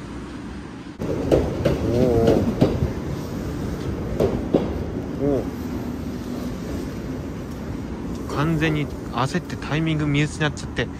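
A train rolls along the tracks below.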